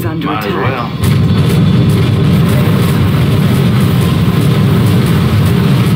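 Loud explosions boom and rumble in quick succession.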